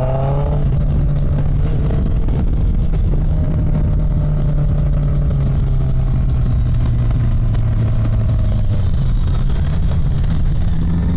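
Wind buffets the microphone steadily.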